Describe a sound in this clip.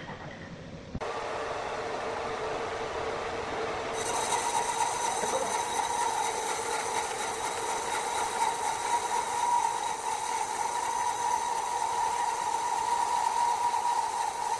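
A band saw whines steadily as it cuts through a large log.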